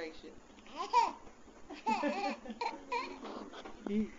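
A baby babbles and squeals happily.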